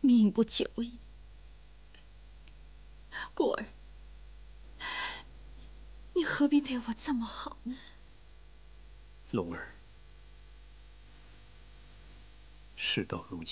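A young man speaks quietly and gravely, close by.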